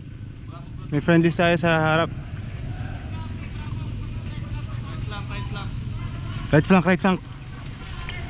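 Men call out loudly to each other outdoors.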